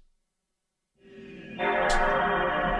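A bright electronic chime rings out and swells.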